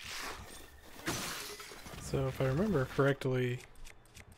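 A wooden spear shatters with a sharp crack.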